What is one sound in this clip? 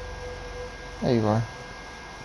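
A man speaks in a raised voice close by.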